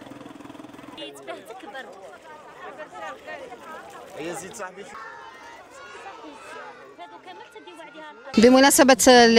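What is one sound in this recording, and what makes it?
Young children chatter close by.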